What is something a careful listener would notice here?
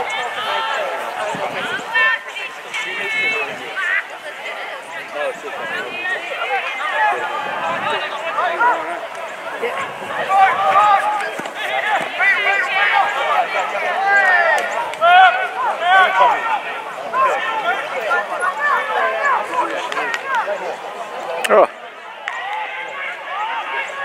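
Players shout to each other across a field.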